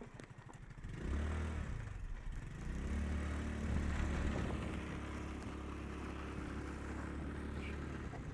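A small motorcycle engine hums and revs up close by.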